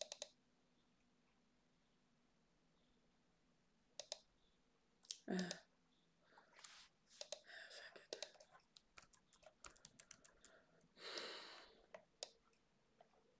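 Computer keys click in quick bursts.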